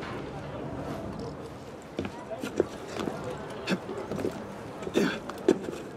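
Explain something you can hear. Hands grip and scrape on stone while climbing a wall.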